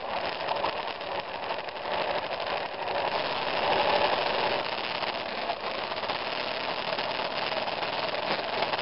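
Heavy rain pours steadily outdoors in gusty wind.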